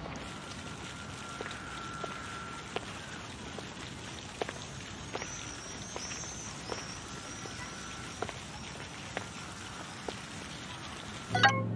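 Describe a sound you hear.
A fountain splashes steadily.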